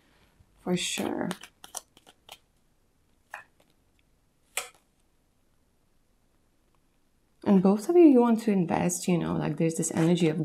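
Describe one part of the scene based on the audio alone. Cards rustle and slap softly as they are shuffled and laid down.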